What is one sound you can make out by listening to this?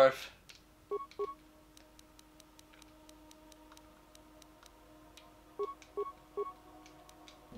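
Short electronic menu beeps sound as selections are made.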